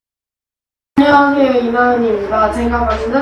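A teenage girl speaks calmly into a microphone.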